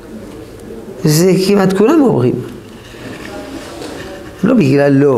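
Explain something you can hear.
An elderly man speaks calmly and close by, pausing between phrases.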